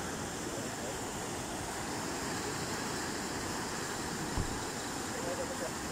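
A swollen river rushes and roars steadily close by.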